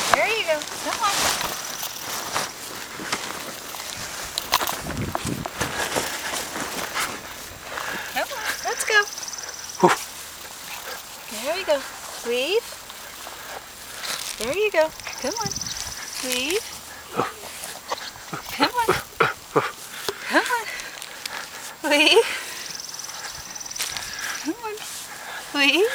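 A woman talks to a dog in a high, coaxing voice close by.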